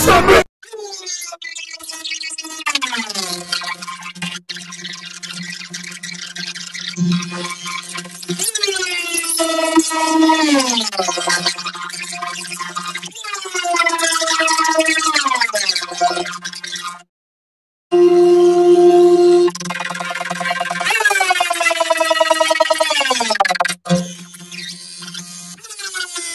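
A high, warped cartoon voice sings long notes that repeatedly slide downward.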